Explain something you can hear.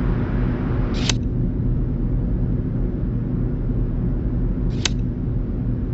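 A short game sound effect clicks as a puzzle piece drops into place.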